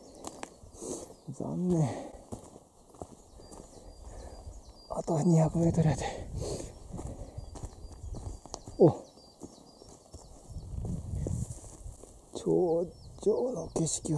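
Footsteps crunch on a leafy dirt trail.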